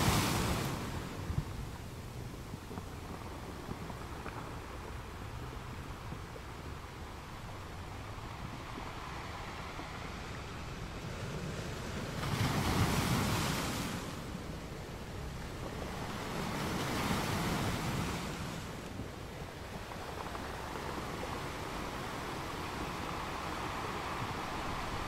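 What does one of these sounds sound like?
Ocean waves crash onto rocks, with louder surges every few seconds.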